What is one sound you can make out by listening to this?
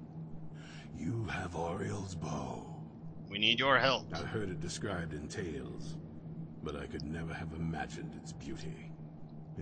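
A man speaks calmly and with wonder, close by.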